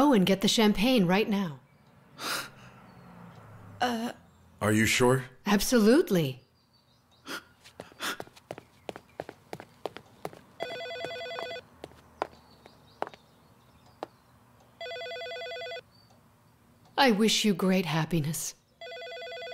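A middle-aged woman speaks with emotion close by.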